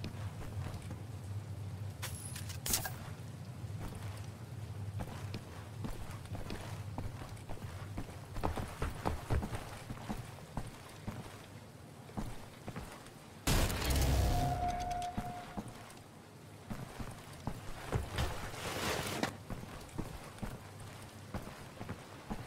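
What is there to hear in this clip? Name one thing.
Footsteps thud on a creaking wooden floor.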